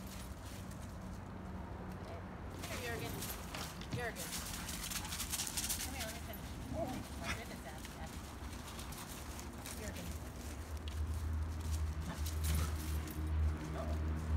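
Dogs run and scuffle through dry leaves, rustling and crunching.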